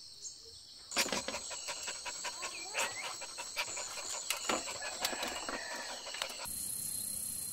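A dog pants quickly.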